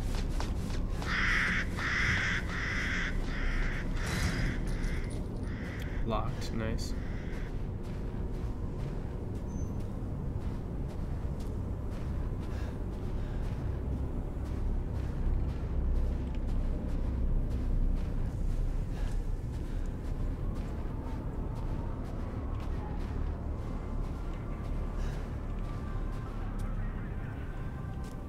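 Wind blows with a low, steady rumble.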